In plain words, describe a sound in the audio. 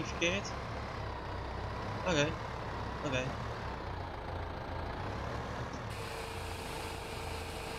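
A tractor engine rumbles steadily at idle.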